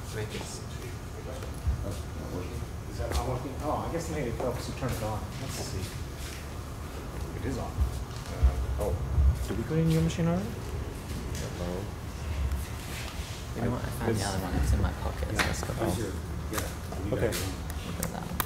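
A young man talks calmly through a microphone.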